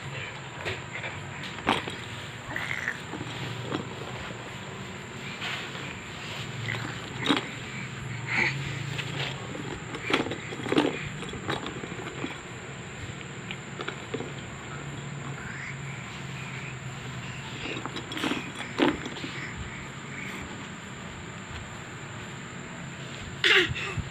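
A baby babbles and coos close by.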